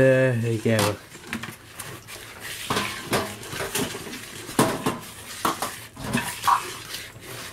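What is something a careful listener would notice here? A wire whisk beats batter in a bowl, clicking and scraping rapidly.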